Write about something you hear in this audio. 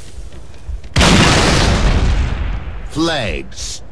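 An explosion bursts loudly, then its roar fades away.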